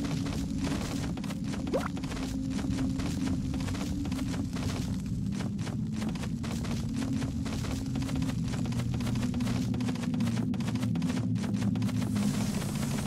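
Quick paw steps patter on wooden boards.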